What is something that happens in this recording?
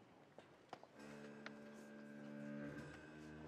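A jazz band starts playing with sustained brass chords.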